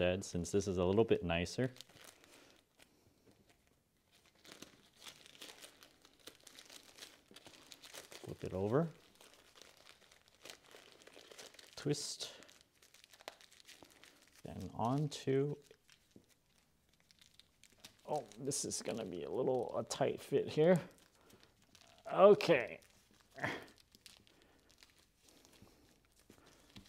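Paper rustles and crinkles as it is folded and twisted.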